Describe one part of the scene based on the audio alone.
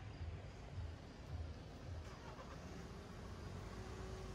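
Traffic rumbles along a nearby street.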